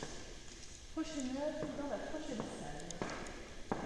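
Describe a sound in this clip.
A woman speaks quietly nearby in an echoing hall.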